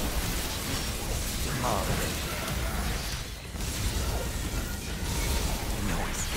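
Lightning crackles and zaps in bursts.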